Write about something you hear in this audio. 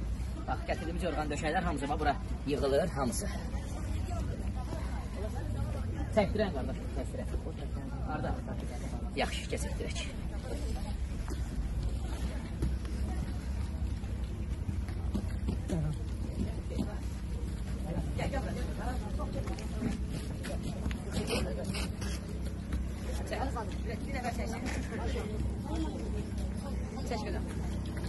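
Young men talk and call out to each other nearby outdoors.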